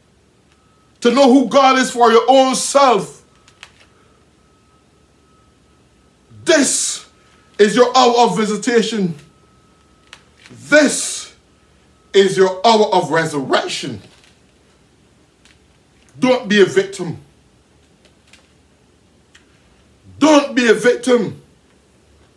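A middle-aged man speaks forcefully into a microphone in short bursts with pauses.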